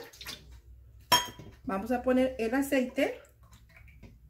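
Liquid pours into a metal bowl.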